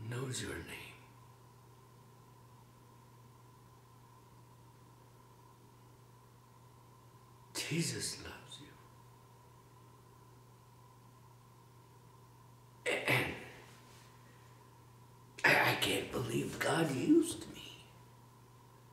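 A middle-aged man speaks quietly and emotionally, close by, in short bursts with long pauses.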